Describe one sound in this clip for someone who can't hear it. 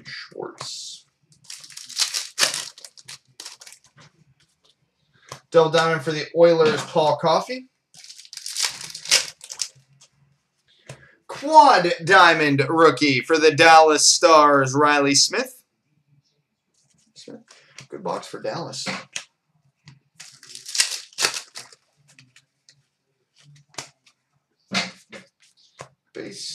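Foil card wrappers crinkle and tear as they are opened.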